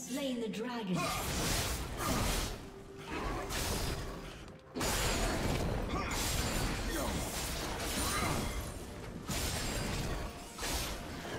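Game fight effects crackle and blast in quick bursts.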